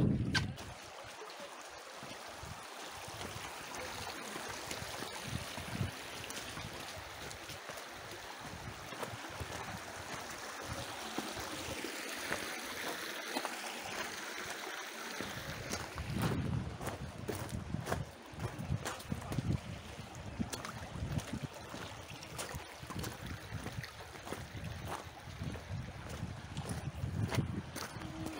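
A shallow stream trickles and splashes over stones.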